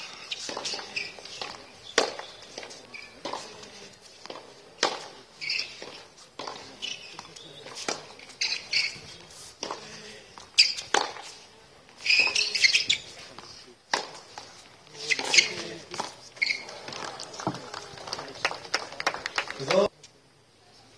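Tennis balls are struck sharply with rackets.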